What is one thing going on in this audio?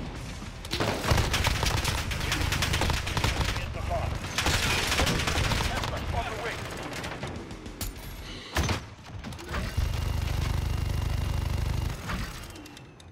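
A rotary machine gun fires in long, rapid bursts.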